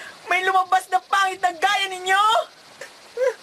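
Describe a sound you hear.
A young man shouts angrily nearby.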